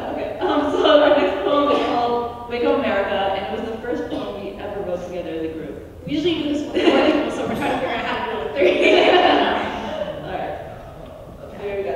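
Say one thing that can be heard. Young women laugh together.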